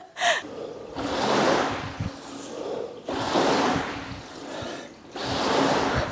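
Water sloshes and whooshes in a rowing machine's tank with each stroke.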